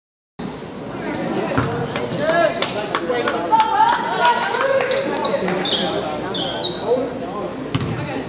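Young players call out and shout in a large echoing gym.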